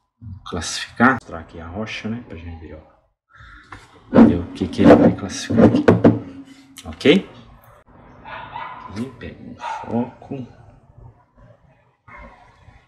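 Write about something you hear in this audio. A middle-aged man talks close to the microphone with animation.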